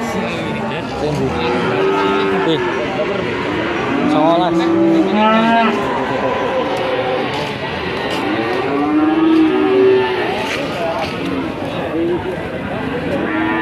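Many men talk at once nearby, outdoors.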